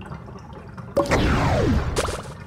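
A video game plays a bright rising jingle.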